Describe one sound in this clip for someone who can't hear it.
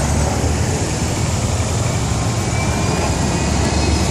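A bus drives past with a low engine drone.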